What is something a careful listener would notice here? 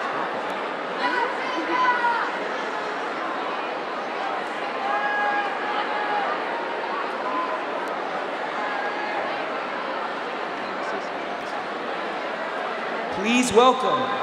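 Many young people in a crowd shout and cheer.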